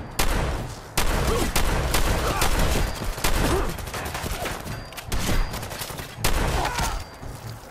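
Gunshots fire in rapid bursts with loud booming echoes.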